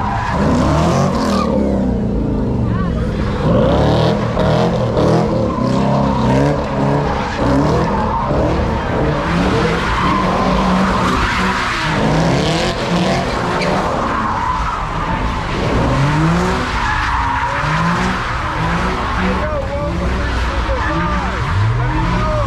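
A car engine revs hard again and again.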